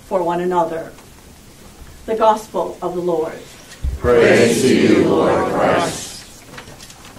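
A congregation sings together in a hall with some echo.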